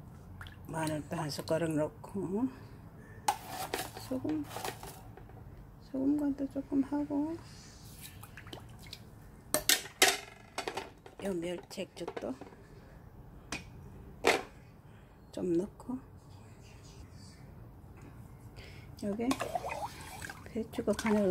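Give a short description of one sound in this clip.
A metal spoon stirs and clinks against a pot.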